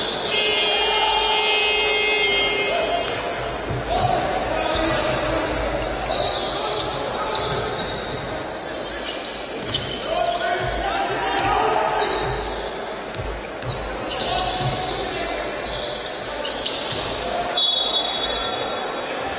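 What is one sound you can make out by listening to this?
A basketball bounces on the court.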